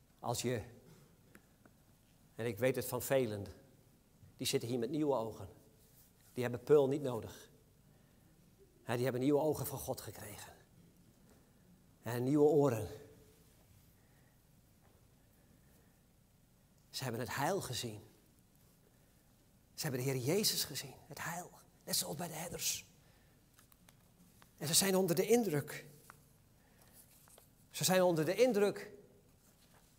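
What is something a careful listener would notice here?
A middle-aged man speaks with animation into a microphone, in short bursts with pauses, in a reverberant hall.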